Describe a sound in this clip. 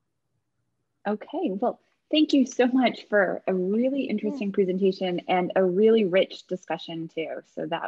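A woman talks with animation over an online call.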